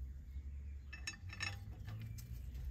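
A metal tool clicks against a metal part.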